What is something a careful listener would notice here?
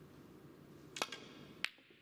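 A cue ball is struck sharply with a cue.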